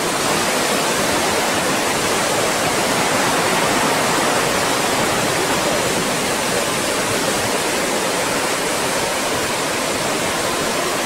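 Waves crash and roar against a rocky shore outdoors.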